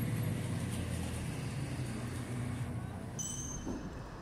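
Low street noise rumbles outdoors.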